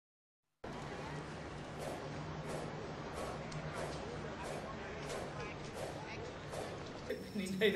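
A broom sweeps confetti across a hard floor.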